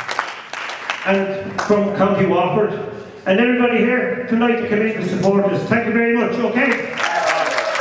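A man sings.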